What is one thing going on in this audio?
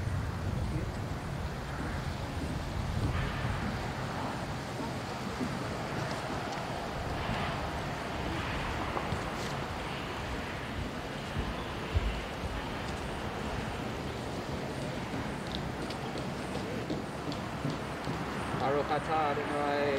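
A man chants a prayer softly nearby.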